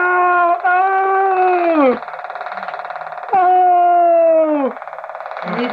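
A toy motorbike sounds a loud electronic tone that drops away in pitch.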